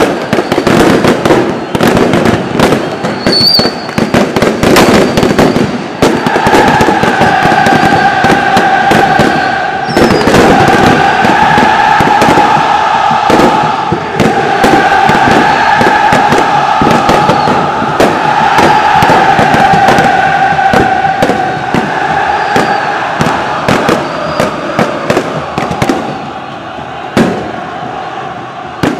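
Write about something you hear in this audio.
Firecrackers bang and crackle repeatedly.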